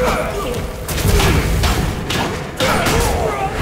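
Flames roar and crackle in a burst of fire.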